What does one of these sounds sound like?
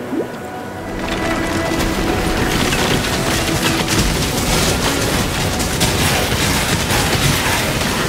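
Magic spells crackle and burst in rapid bursts.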